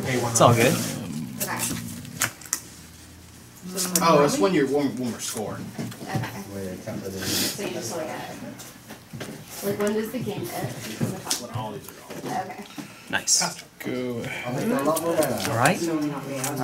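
Playing cards are shuffled and slapped down on a table.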